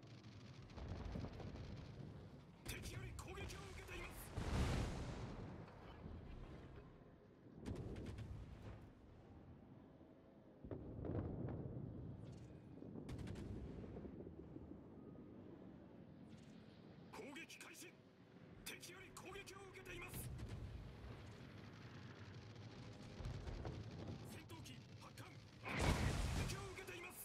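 Naval guns boom and shells explode in heavy bursts.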